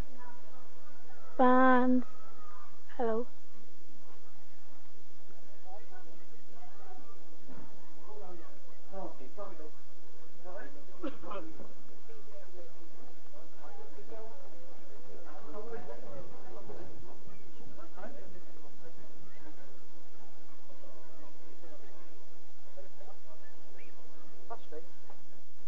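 A crowd of men chatters and calls out outdoors.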